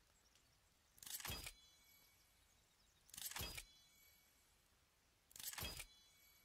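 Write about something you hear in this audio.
Heavy wooden logs thud and clatter into place, one after another.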